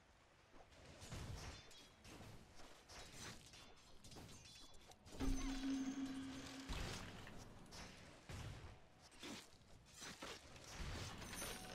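Game spells and weapon hits crackle and clash.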